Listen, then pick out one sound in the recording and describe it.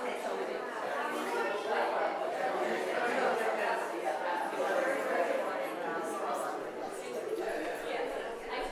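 A woman speaks steadily through a microphone in a reverberant hall.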